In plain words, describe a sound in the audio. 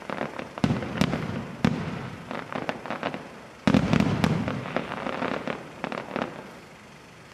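Firework stars crackle and pop in the sky.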